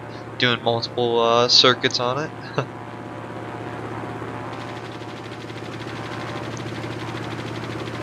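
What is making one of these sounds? A propeller aircraft engine drones.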